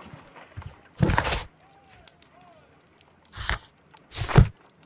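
Paper pages rustle as a book opens.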